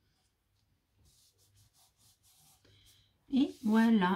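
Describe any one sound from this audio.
Paper rustles softly as it is pressed flat.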